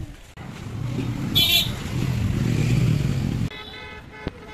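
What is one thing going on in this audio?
Motorbikes ride past on a street.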